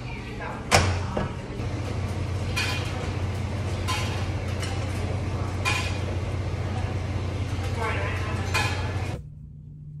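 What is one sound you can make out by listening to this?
Fingers press buttons on a washing machine.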